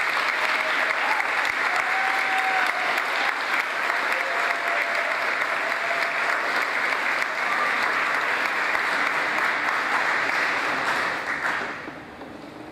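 A large crowd applauds steadily in an echoing hall, then the clapping stops abruptly.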